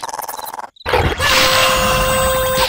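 A second cartoon creature screams in alarm.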